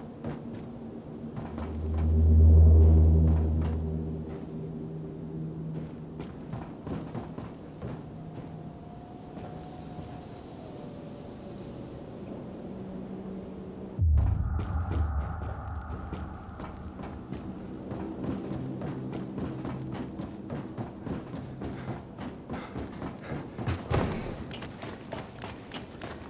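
Footsteps patter quickly across a metal roof.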